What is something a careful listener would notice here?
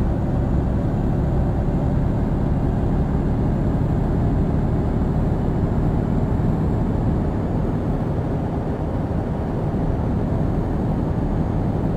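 A truck engine hums steadily while driving on a highway.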